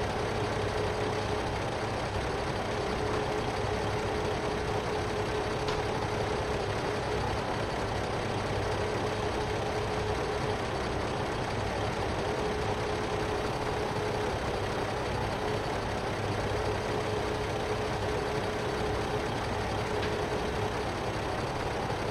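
A tractor engine idles steadily.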